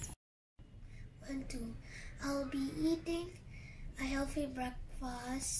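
A young boy talks calmly, close by.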